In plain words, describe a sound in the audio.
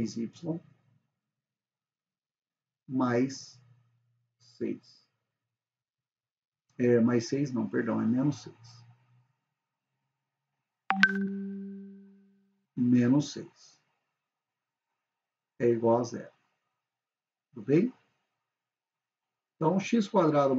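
A young man explains calmly into a close microphone, speaking in short bursts with pauses.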